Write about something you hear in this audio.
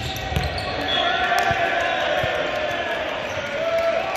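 A volleyball thuds off hands.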